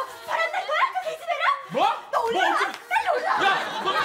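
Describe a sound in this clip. A young woman shouts angrily at close range.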